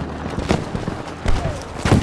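An explosion bursts close by.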